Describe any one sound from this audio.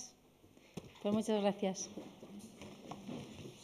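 A woman speaks into a microphone.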